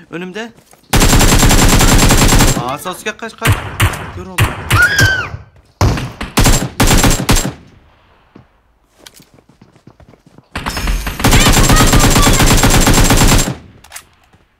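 Automatic rifle fire crackles in rapid bursts.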